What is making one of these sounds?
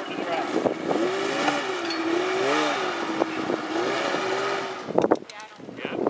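A snowmobile engine hums steadily.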